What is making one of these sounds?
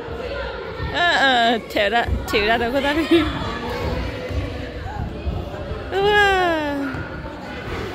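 A woman cheers with animation in an echoing hall.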